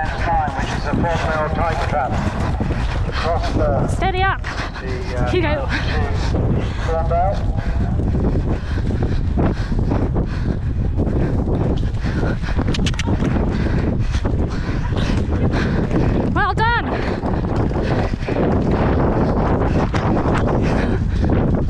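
Wind rushes loudly against the microphone outdoors.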